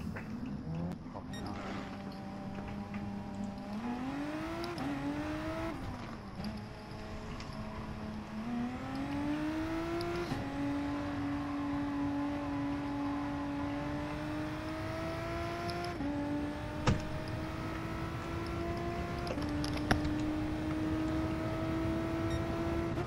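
A racing car engine revs up, rising in pitch through each gear and dropping at each shift.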